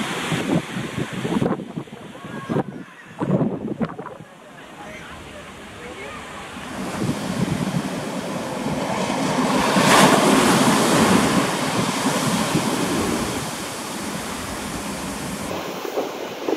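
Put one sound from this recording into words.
Small waves wash softly onto a beach.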